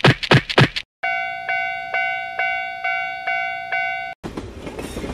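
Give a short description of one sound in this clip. A railway crossing bell rings rapidly.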